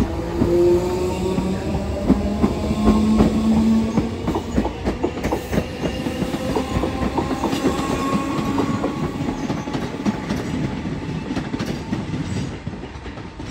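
A train rumbles past close by, its wheels clicking over the rail joints.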